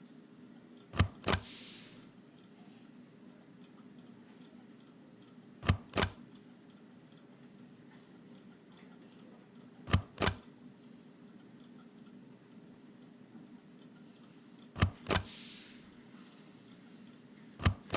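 A rubber stamp thumps twice onto paper on a table.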